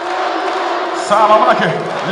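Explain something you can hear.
A crowd cheers loudly in a sudden burst.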